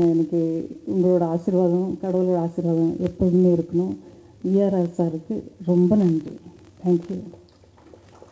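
A woman speaks with animation into a microphone over loudspeakers.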